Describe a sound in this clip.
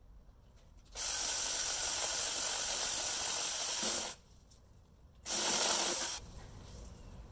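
An electric chainsaw whirs loudly as it cuts a branch in bursts.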